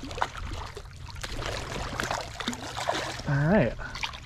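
A fish splashes in shallow water.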